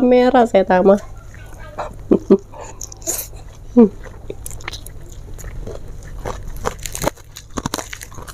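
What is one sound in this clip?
A young woman chews and smacks her lips close to a microphone.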